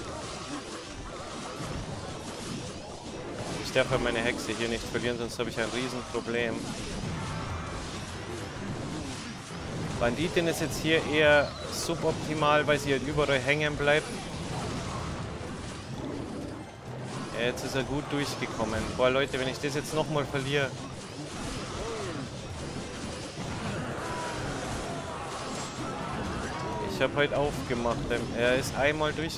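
Cartoonish battle sound effects clash, pop and thud from a mobile game.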